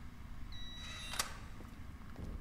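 A metal locker door clicks open.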